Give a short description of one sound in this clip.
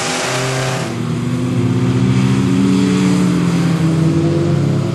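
A second car's engine revs loudly close by.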